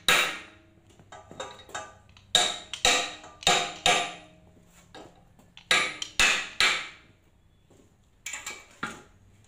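Metal parts clink and rattle against each other.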